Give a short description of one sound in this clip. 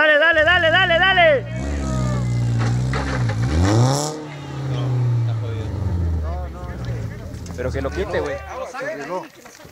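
A rally car's engine idles and revs with a loud, rumbling hum.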